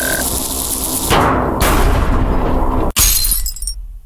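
A heavy metal safe crashes down with a loud thud.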